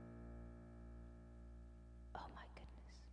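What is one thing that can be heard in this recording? A keyboard chord rings out and fades.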